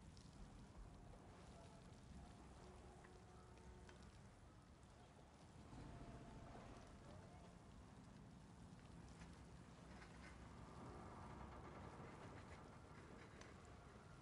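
Water laps gently against a hull.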